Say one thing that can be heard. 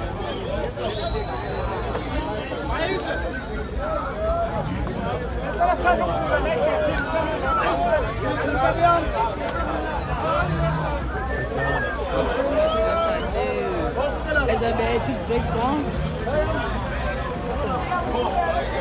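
A crowd of men and women talks and calls out loudly outdoors.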